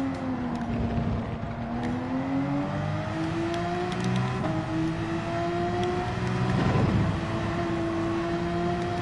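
A racing car engine roars and climbs in pitch, dropping briefly at each gear change.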